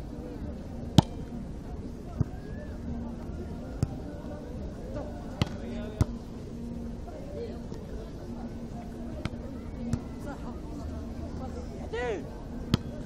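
Players hit a volleyball with dull thumps.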